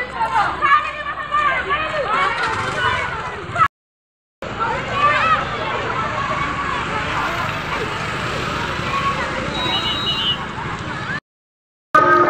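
A crowd of children chatters and calls out outdoors.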